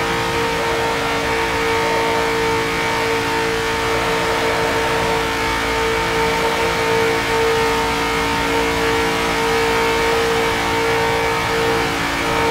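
A race car engine roars at a steady high pitch.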